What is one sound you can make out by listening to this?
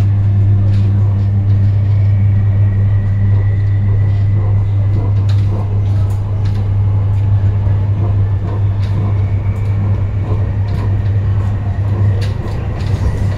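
Another train rushes past close by.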